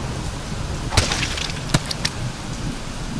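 A blade strikes flesh with heavy, wet hits.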